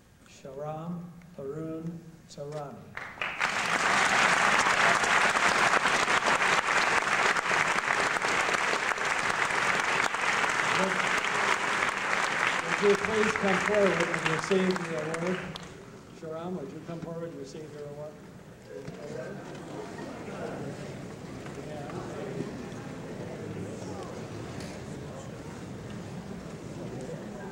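An elderly man speaks through a microphone in a large hall.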